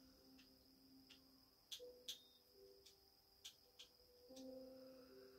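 Soft game music plays from a television.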